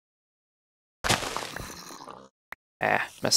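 Ripe wheat breaks with a short rustling crunch.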